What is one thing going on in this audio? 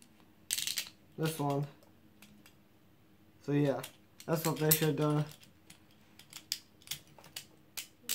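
Small plastic parts click and snap as they are fitted together.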